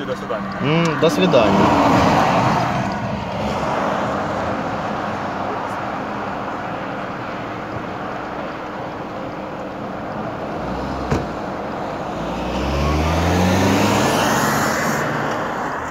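Tyres roll along a road with a steady rushing noise.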